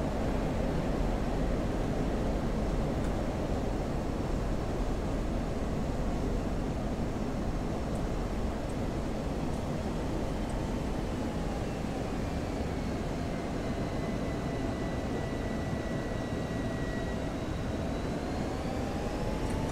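Wind rushes steadily past a cockpit.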